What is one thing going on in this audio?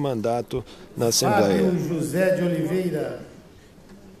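A man speaks loudly and formally through a microphone in a large echoing hall.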